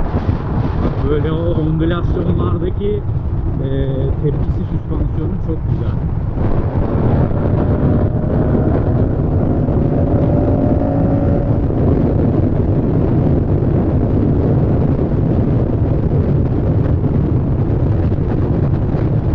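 A motorcycle engine roars steadily as the bike speeds up.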